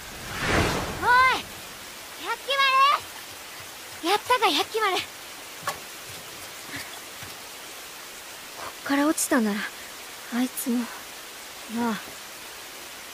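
A young boy asks questions in a high, excited voice.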